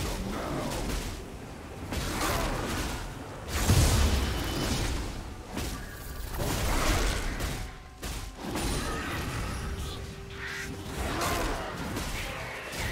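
Magical blasts and hits crackle and whoosh during a fight.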